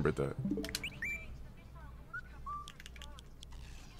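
Short electronic blips sound as a game console menu is navigated.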